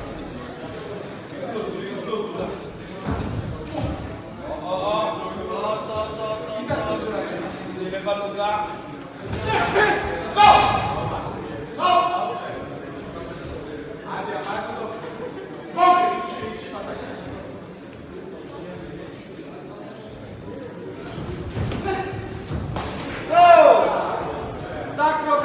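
Spectators shout loudly in an echoing hall.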